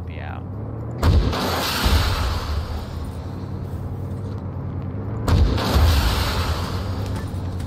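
A mortar fires with loud booms that roll and echo away.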